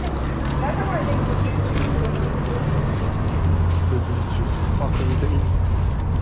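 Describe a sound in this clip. Traffic rumbles past on a nearby road outdoors.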